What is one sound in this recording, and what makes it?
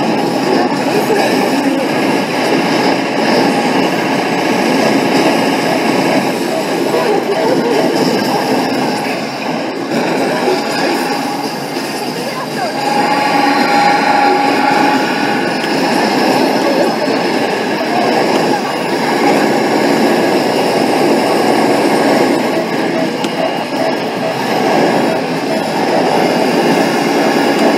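An arcade game plays loud battle sounds and explosions.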